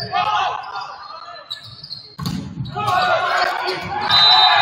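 A volleyball is struck in a large echoing gym.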